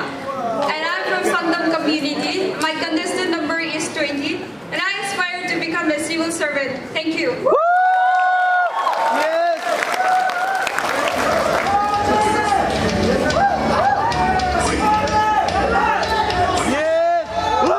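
Young women sing together through loudspeakers in a large hall.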